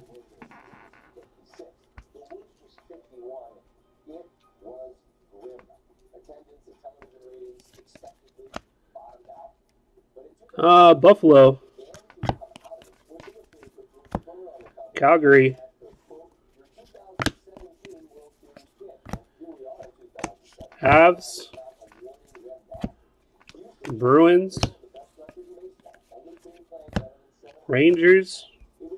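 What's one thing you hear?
Trading cards are flipped through by hand, sliding and flicking against each other.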